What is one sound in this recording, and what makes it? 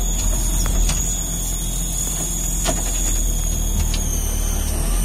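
An off-road vehicle's engine rumbles low and steady as it drives.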